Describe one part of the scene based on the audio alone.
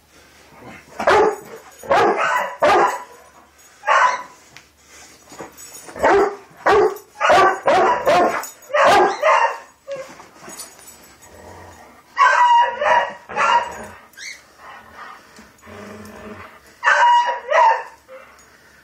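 A large dog barks and growls loudly in short bursts.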